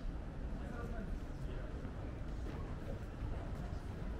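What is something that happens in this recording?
A man's footsteps tap on the pavement nearby.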